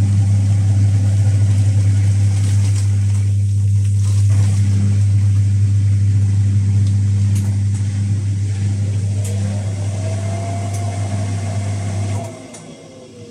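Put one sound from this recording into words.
A washing machine hums loudly and steadily, then stops.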